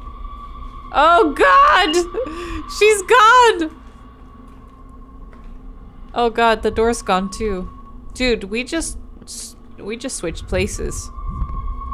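A young woman talks close to a microphone, with animation.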